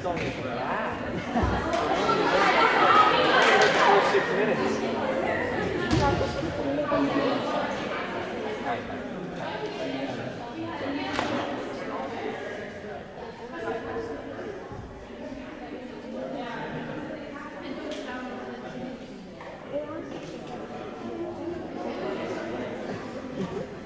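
Young women chatter and call out in a large echoing gym.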